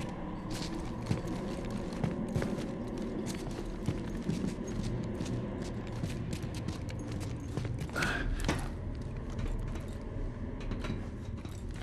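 Footsteps clank on metal and rubble.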